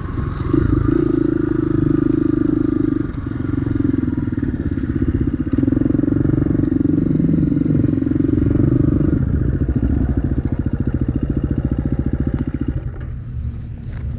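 A dirt bike engine revs and putters up close.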